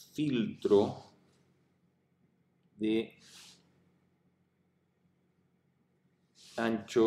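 A man speaks calmly and slowly into a close microphone, with pauses.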